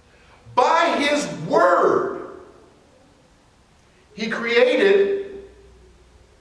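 A man preaches emphatically into a microphone in a reverberant hall.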